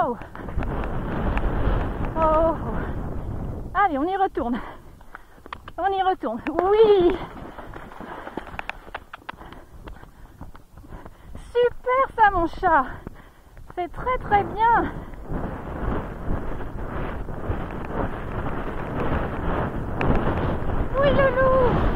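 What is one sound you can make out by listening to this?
A horse gallops over soft ground with dull hoofbeats.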